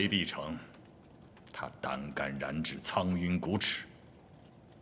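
An elderly man speaks calmly and low, close by.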